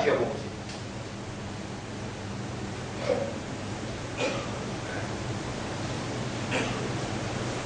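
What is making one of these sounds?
A man speaks slowly into a microphone, in short bursts with long pauses.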